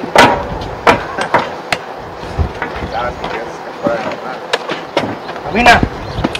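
Footsteps clatter down metal steps.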